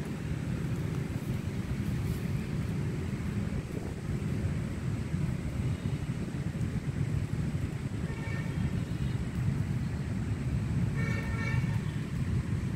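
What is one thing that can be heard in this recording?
Wind blows steadily through leaves outdoors.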